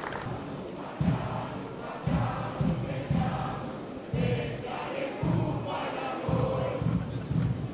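Boots stamp heavily in step as a squad marches past.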